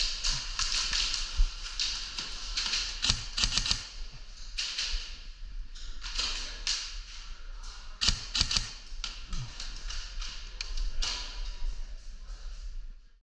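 Footsteps crunch on a gritty floor.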